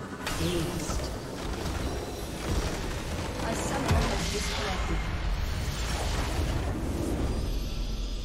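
Game spell effects crackle and blast in a busy fight.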